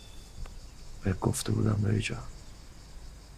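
A man speaks briefly and with emotion, close by.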